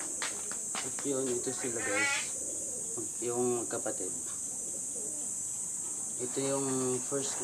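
A pigeon coos softly close by.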